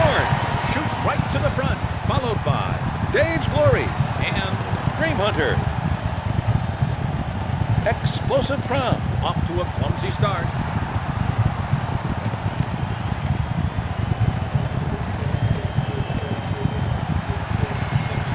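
Horse hooves pound rapidly on a dirt track.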